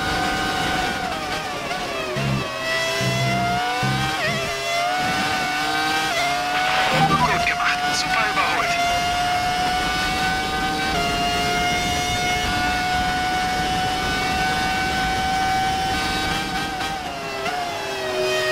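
A racing car engine drops in pitch as the car brakes and shifts down for a corner.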